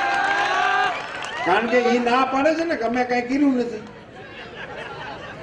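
An elderly man speaks forcefully through a loudspeaker microphone outdoors.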